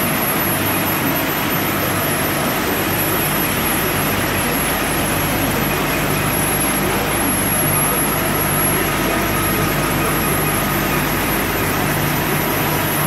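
A printing press runs with a loud, steady mechanical rumble and whir.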